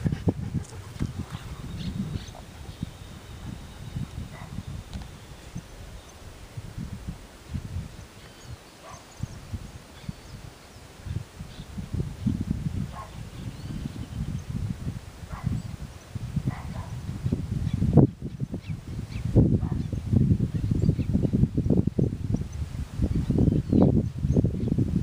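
Wind gusts and rumbles across the microphone in the open air.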